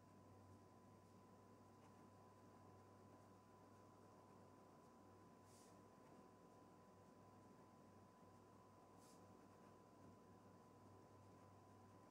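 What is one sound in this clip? A felt-tip pen squeaks and scratches softly on paper.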